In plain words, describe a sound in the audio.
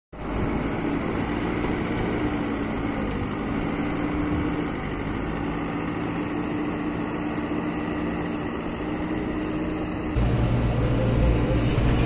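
A diesel engine rumbles steadily and loudly.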